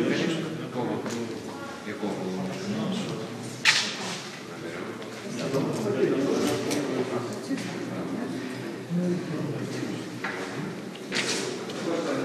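Several men and women talk at once nearby.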